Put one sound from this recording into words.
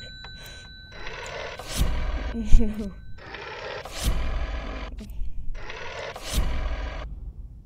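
A rotary telephone dial whirs as it spins back.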